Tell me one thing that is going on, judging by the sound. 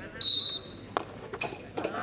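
A hockey stick smacks a ball once.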